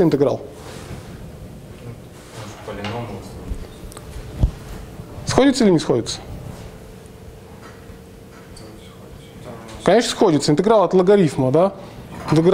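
A man lectures with animation.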